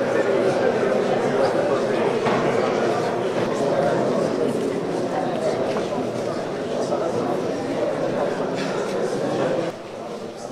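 A crowd of men and women chatter nearby in a busy room.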